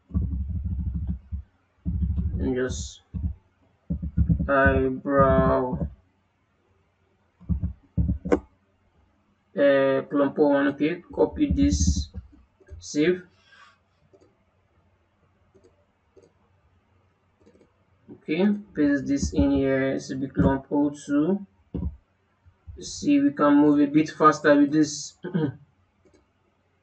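A young man talks calmly into a close microphone, in short bursts with pauses.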